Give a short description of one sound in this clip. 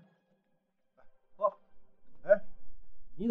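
A man speaks with surprise nearby.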